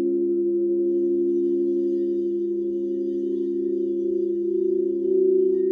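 Crystal singing bowls hum with steady, overlapping ringing tones.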